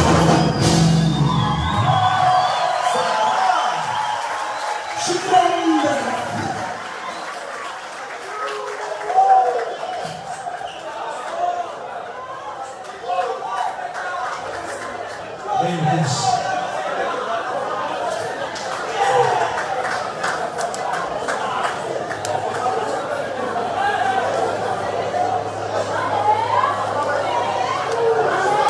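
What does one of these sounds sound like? A large crowd cheers and sings along loudly.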